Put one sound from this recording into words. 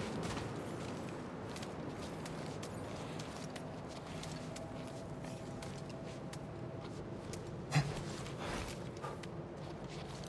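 Clothing and gear rustle and scrape against rock.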